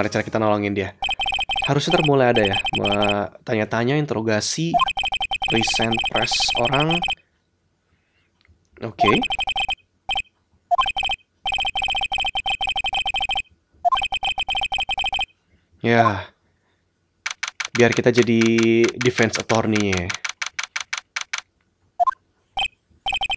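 Rapid electronic beeps chatter in quick bursts.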